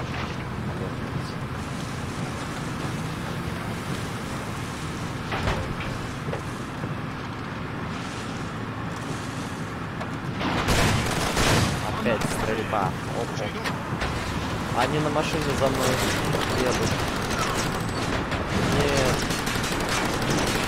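A car engine rumbles steadily as the car drives along a bumpy dirt track.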